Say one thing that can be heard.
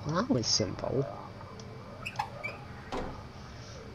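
A metal hatch slides open with a scrape.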